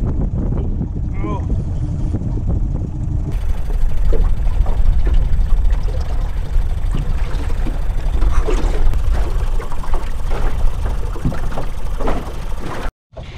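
Wind rumbles steadily across open water.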